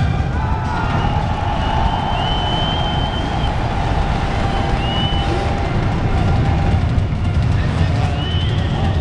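A crowd cheers loudly in a large arena.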